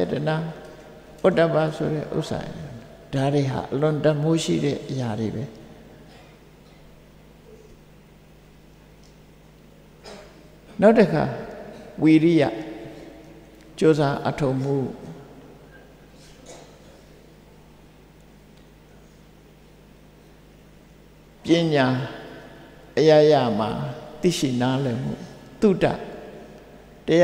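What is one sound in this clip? An elderly man speaks slowly and calmly in short phrases with long pauses.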